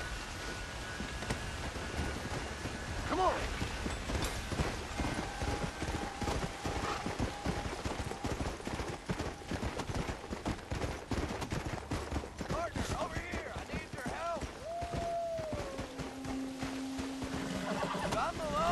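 A horse's hooves thud rapidly on snowy ground at a gallop.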